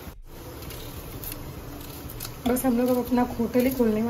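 A knife slices through an onion.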